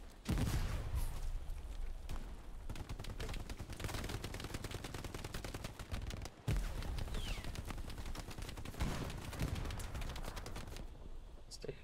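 Rapid gunfire rattles close by.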